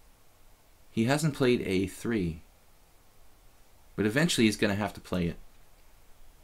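A middle-aged man speaks through a microphone in short bursts.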